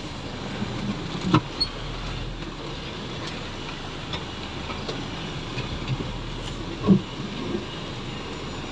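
A vehicle body bumps and knocks over rough ground.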